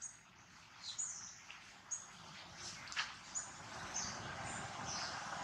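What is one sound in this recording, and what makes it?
Dry leaves rustle as a small monkey moves about on the ground.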